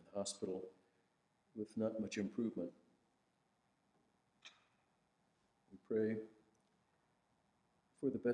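A middle-aged man reads aloud slowly and calmly into a microphone, with pauses between phrases.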